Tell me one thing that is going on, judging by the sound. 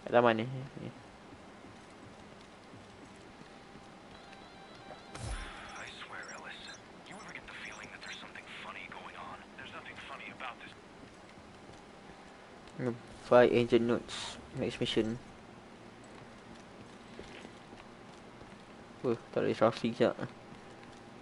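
A young man talks close to a microphone in short bursts.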